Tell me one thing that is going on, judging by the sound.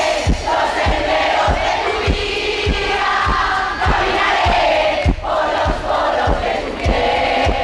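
A man sings loudly into a microphone over a live band.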